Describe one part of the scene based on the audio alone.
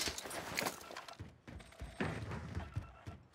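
Footsteps clank on a metal roof.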